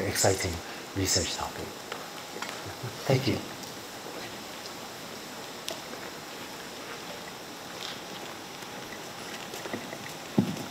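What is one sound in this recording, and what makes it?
A middle-aged man speaks calmly through a microphone in a large echoing hall, with long pauses.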